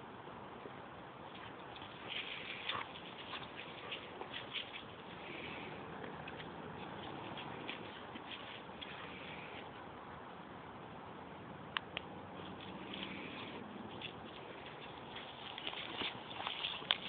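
Paws scuffle on dry grass.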